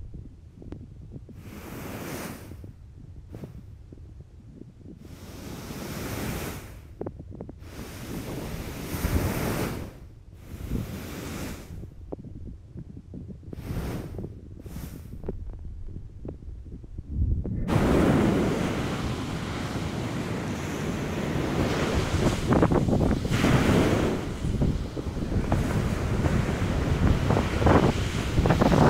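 Waves break and wash onto the shore close by.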